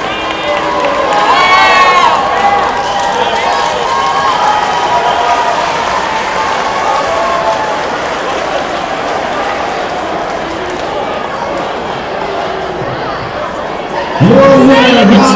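A large crowd shouts and cheers in an echoing hall.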